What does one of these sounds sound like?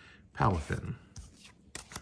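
Plastic cards click and rustle in hands.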